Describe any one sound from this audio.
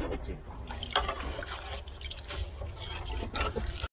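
A sponge scrubs a pan in water.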